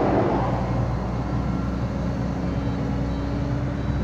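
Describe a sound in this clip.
Loose dirt pours from an excavator bucket.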